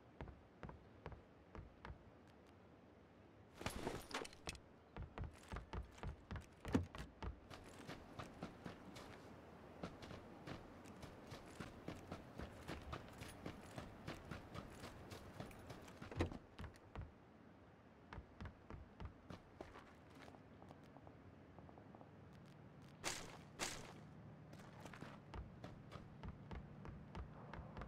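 Footsteps thud quickly on a wooden floor and grass.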